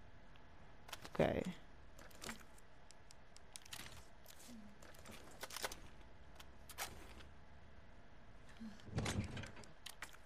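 Menu selections click sharply, one after another.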